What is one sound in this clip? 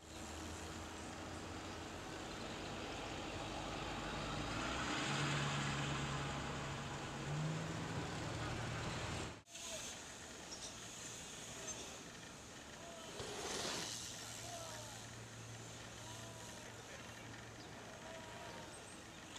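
Bicycle tyres roll and crunch over packed dirt.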